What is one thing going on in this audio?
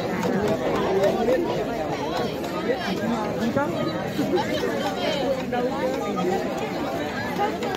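A crowd of men and women chatter loudly outdoors close by.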